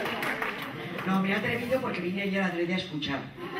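A woman speaks into a microphone.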